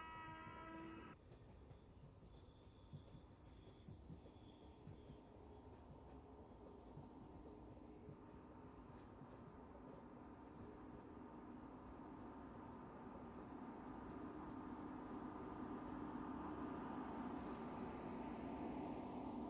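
Train carriages rumble and clatter along the rails, growing louder.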